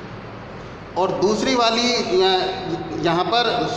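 A middle-aged man speaks loudly and clearly, close by.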